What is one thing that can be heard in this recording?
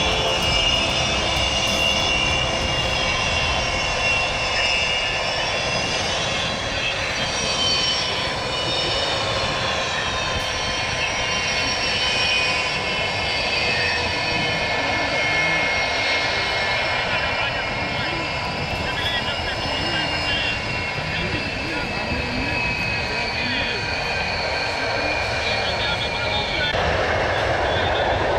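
A jet engine roars with a deep rumble.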